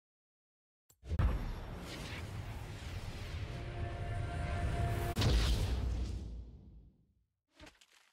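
A magical shimmering hum swells and fades.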